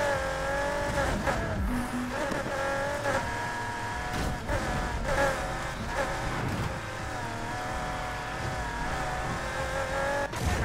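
A racing car engine roars at high revs, rising and dipping in pitch with gear changes.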